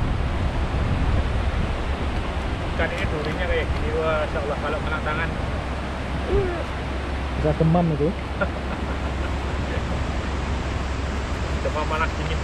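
Water in a shallow stream babbles steadily.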